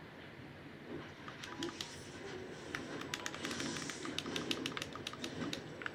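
Flames burst and crackle.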